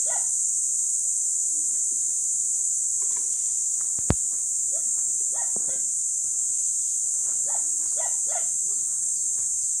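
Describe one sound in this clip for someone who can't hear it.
A long pole rustles and scrapes through leafy branches.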